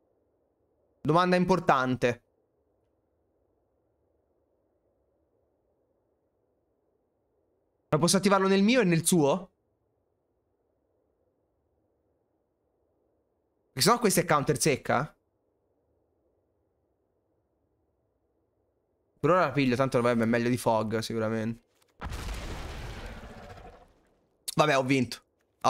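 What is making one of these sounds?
A young man speaks into a close microphone in short bursts, calmly.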